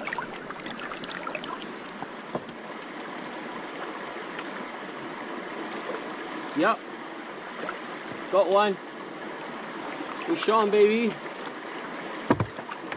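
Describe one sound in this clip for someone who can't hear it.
A shallow river rushes over stones outdoors.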